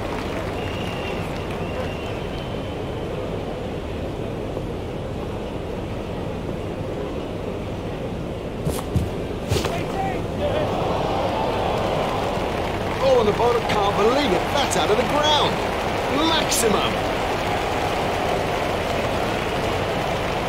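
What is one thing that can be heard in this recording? A large crowd murmurs steadily and then cheers.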